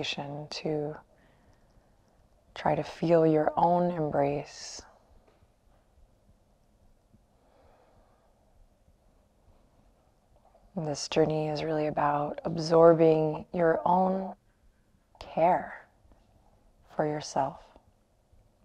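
A young woman speaks calmly and softly, close by, with pauses.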